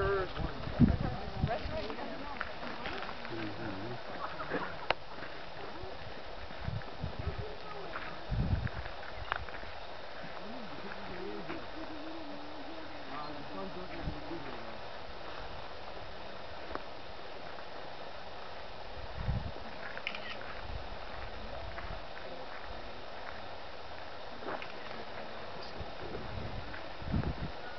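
Wind gusts and rumbles across an open hillside.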